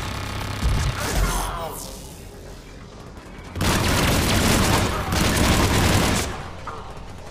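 Gunfire bursts out in rapid shots.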